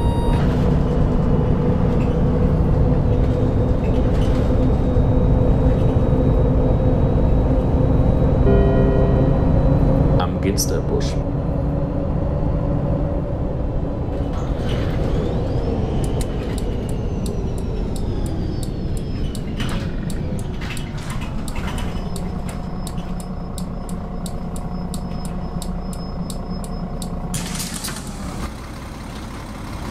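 A bus engine hums steadily, then winds down as the bus slows.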